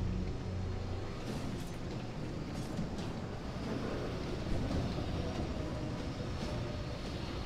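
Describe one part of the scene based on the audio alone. Heavy mechanical footsteps stomp and clank.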